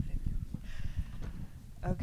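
An elderly man talks into a microphone.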